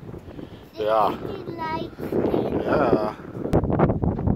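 A young child speaks close by in a high voice.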